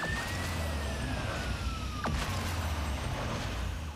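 A car slams into another car in a video game.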